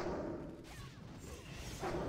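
Fire blasts roar in a game.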